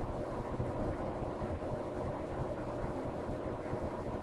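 Metal tweezers click softly against a small metal part.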